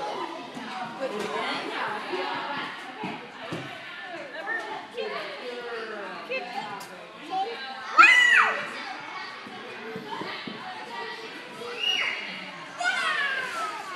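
A small child's feet thump softly as the child bounces along a trampoline track.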